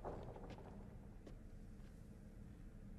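Footsteps walk away across a hard floor.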